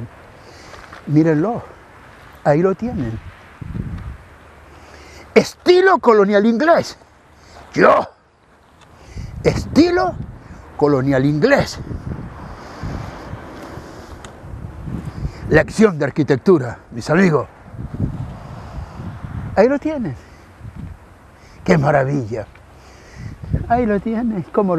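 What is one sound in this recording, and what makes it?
An elderly man speaks with animation close to a clip-on microphone.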